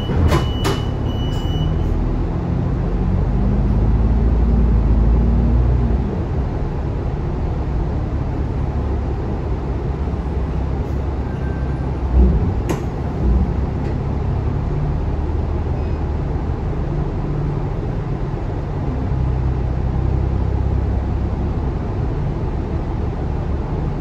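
A bus engine rumbles steadily from inside the bus, rising and falling as it pulls away and slows.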